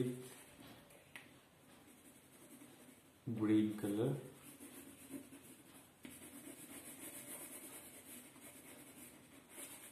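A crayon scratches softly across paper.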